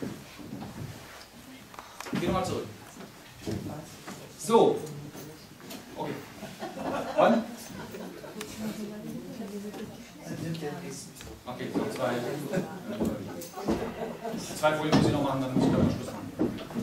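A man speaks steadily.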